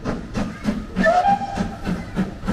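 A steam whistle gives a short shrill blast.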